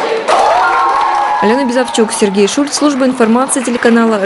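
A group of young people clap their hands.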